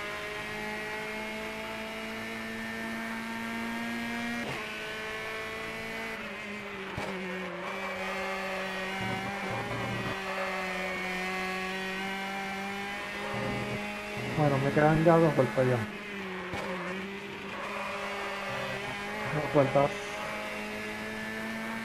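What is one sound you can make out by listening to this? A racing car engine hums steadily at high revs, shifting pitch as the car brakes and accelerates.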